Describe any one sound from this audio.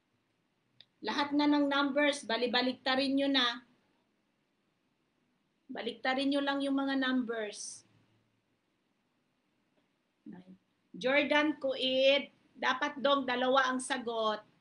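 A young woman sings loudly through a phone microphone.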